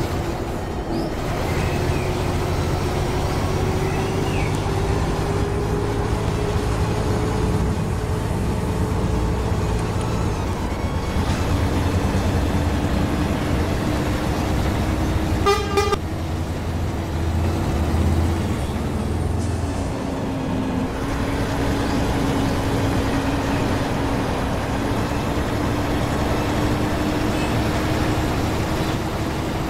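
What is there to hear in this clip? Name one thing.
Tyres roll on a highway with a steady rushing noise.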